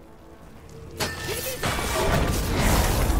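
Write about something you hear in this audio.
A magic ice burst whooshes and crackles.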